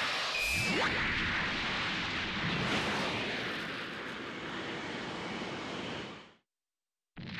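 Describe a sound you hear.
A loud rushing whoosh of energy swells and fades.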